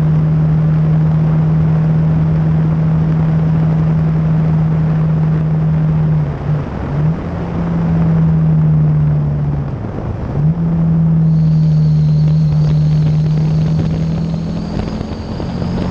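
Wind rushes past a rider at speed.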